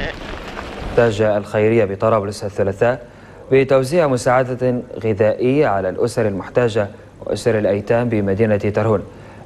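A young man speaks calmly and clearly into a microphone, like a news presenter.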